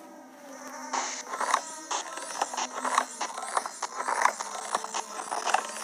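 Balloons pop in quick succession.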